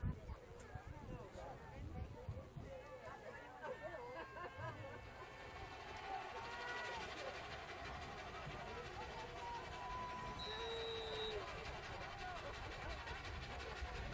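Young men on the sideline shout and cheer outdoors.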